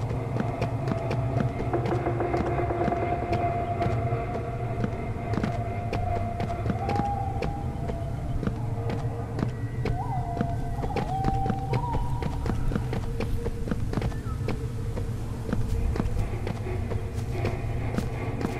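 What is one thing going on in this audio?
An electronic scanner crackles and buzzes with static.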